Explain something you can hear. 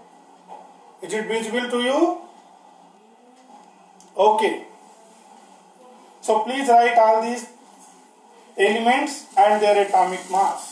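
A man explains in a calm, lecturing voice close by, in short bursts with pauses.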